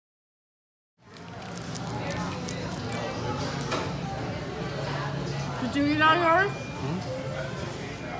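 A crowd of people chatters in a busy room.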